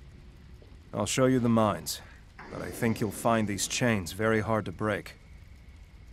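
A man speaks calmly in a low voice, close by.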